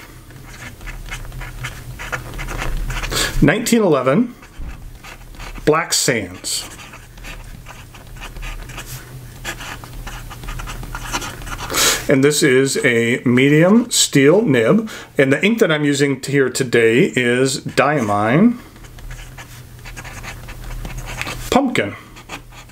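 A pen nib scratches softly across paper.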